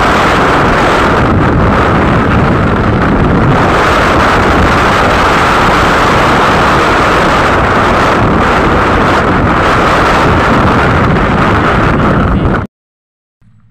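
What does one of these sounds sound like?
Wind roars loudly past a fast-moving motorcycle.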